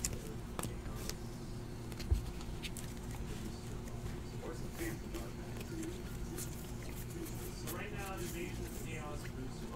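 Trading cards shuffle and rustle in hands.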